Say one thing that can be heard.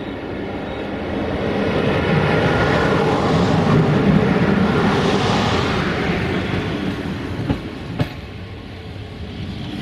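Train wheels rumble and clatter loudly over the rails.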